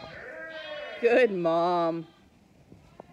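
A ewe gives a loud, deep bleat close by.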